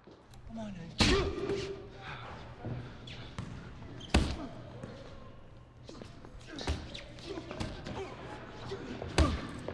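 Boxing gloves thud against a body in heavy punches.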